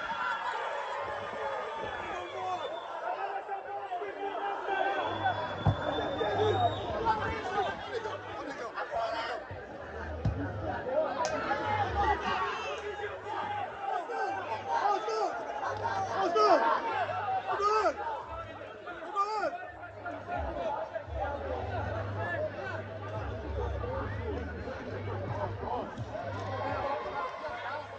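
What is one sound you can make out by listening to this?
Boys shout and call to each other across an open field.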